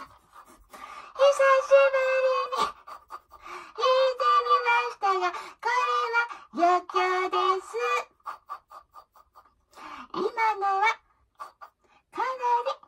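A girl sings close to a microphone.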